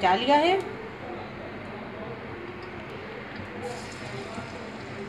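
Oil sizzles softly in a hot pan.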